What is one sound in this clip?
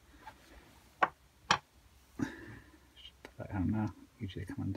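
Small metal parts click and clatter as they are picked up and handled.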